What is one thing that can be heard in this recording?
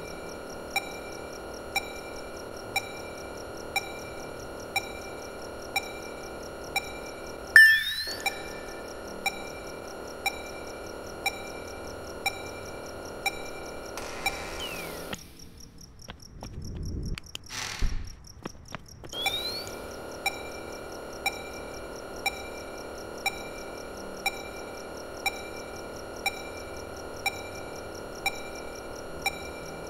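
A computer beeps about once every second.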